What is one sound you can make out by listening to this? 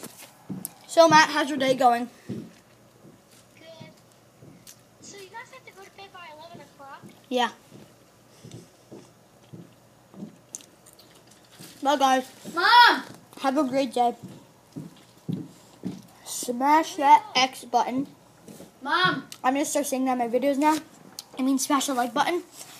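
A young boy talks animatedly, close to the microphone.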